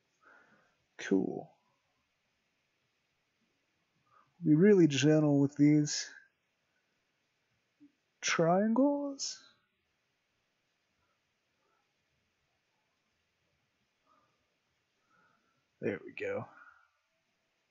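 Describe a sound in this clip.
A man speaks calmly and close, heard through a microphone.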